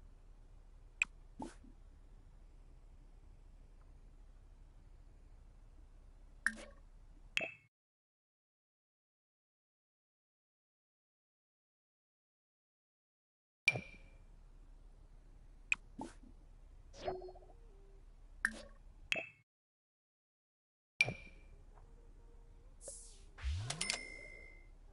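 Soft game interface clicks sound as menus open and close.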